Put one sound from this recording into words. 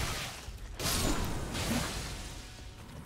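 A burst of fiery magic roars and crackles loudly.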